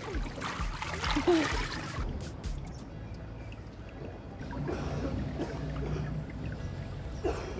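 Water splashes and laps as a woman swims.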